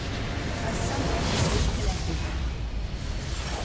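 A large structure explodes with a loud crash.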